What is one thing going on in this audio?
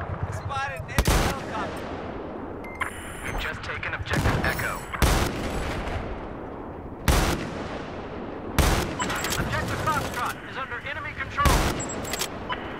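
Sniper rifle shots crack loudly, one at a time.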